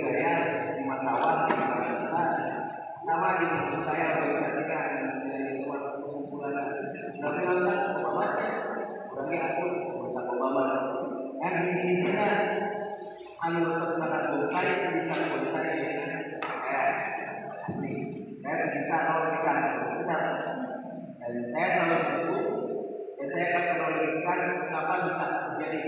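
A man speaks steadily into a microphone, heard through loudspeakers in an echoing hall.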